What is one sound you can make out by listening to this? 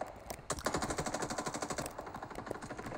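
Rapid gunfire rattles in a fast burst.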